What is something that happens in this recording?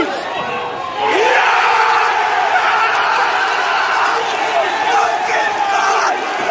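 A large crowd roars and cheers loudly.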